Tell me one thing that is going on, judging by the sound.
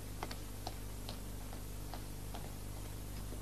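Hard-soled footsteps click on a floor.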